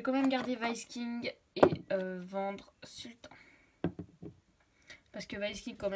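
A plastic toy horse is set down on a wooden surface with a light knock.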